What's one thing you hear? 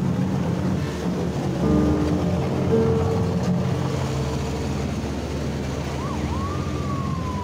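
A car drives past on a wet road.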